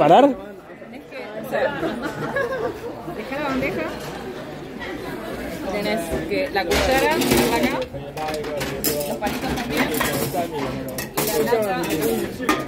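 Young people chat nearby.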